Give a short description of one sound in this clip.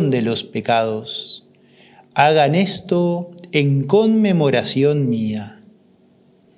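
A man sings a chant in a full voice through a microphone.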